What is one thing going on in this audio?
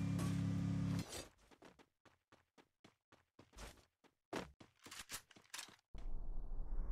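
Footsteps run quickly over ground.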